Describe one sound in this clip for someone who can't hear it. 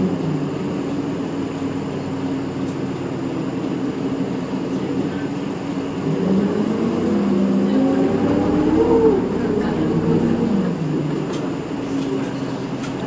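A vehicle engine hums steadily, rising in pitch as it speeds up and then settling.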